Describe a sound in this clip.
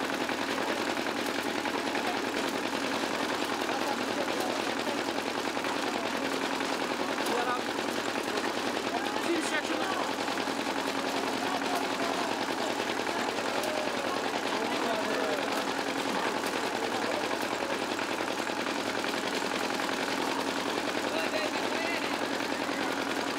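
A machine's engine runs steadily nearby.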